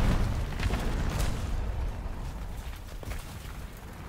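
A fire roars and crackles after an explosion.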